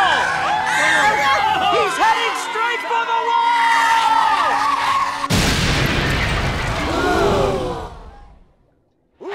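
A crowd screams in horror.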